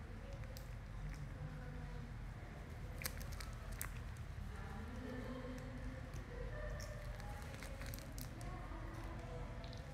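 A young woman bites and crunches a crisp snack.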